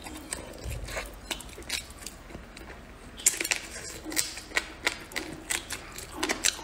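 A young woman chews crunchy fried food loudly and close up.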